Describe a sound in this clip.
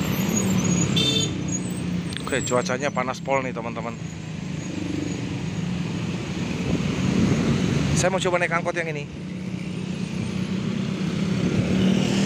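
Road traffic rumbles steadily by outdoors.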